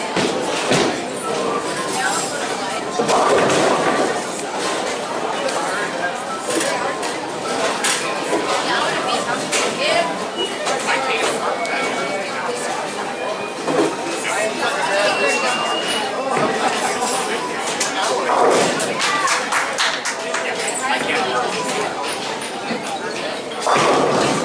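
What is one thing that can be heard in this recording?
Bowling pins crash and clatter in a large echoing hall.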